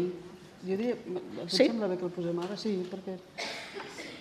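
A middle-aged woman speaks calmly into a microphone in an echoing room.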